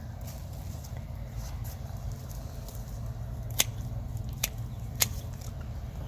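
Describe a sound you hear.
Dry plant stalks rustle and snap under a man's hands.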